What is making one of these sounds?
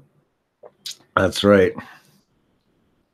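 A man talks briefly through a microphone.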